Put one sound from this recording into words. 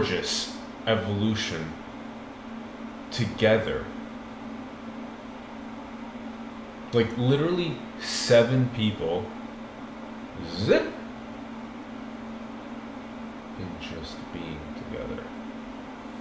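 A young man speaks calmly and haltingly, close by.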